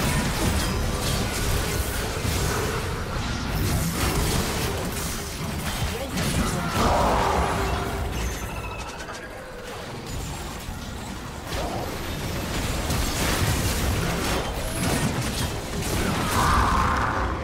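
Game spell effects crackle and burst in quick succession.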